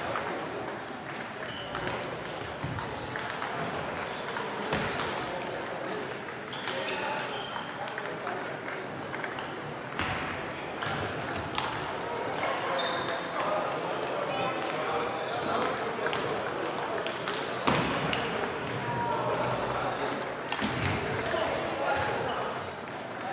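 Players' shoes squeak on the hall floor.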